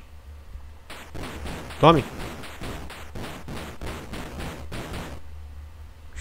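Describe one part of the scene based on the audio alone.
Electronic game sound effects buzz and crackle.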